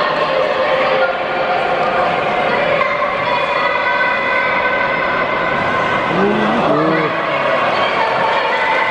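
A large crowd sings and chants together, echoing across a wide open space.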